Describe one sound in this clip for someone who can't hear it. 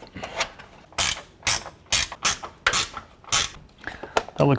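A ratchet wrench clicks quickly as a bolt is turned.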